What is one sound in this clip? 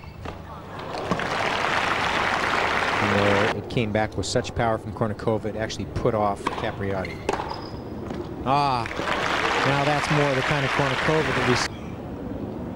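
A crowd applauds in a large indoor hall.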